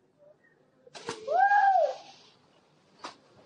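A man dives into water with a loud splash.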